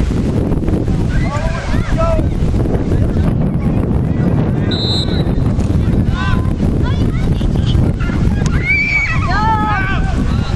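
Young men shout to each other from across the field.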